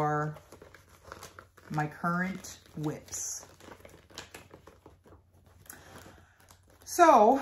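A plastic zip pouch crinkles and rustles in someone's hands.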